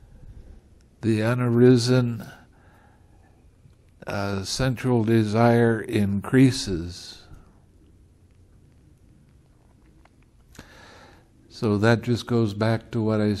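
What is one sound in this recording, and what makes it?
An elderly man reads aloud calmly and slowly, close to a microphone, with pauses.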